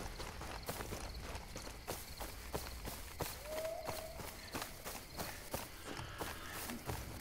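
Footsteps crunch steadily on dry grass.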